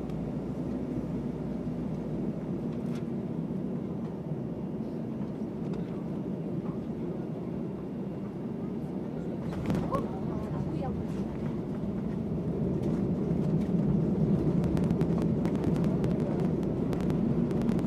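A jet engine roars steadily from close by, growing louder.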